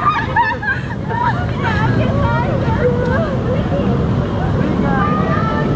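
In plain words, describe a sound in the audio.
Young women laugh nearby outdoors.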